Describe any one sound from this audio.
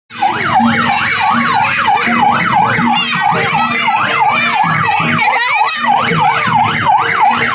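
Children and adults chatter outdoors.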